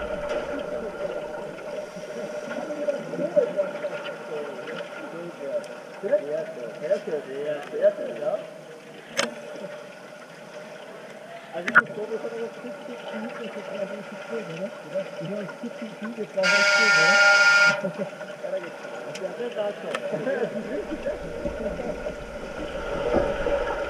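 Muffled splashing and churning water sound from swimmers above.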